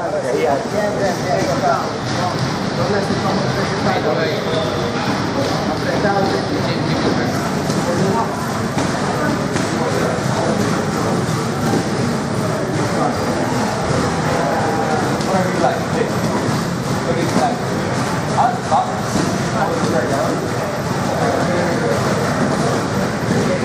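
An ab wheel rolls back and forth across a floor mat.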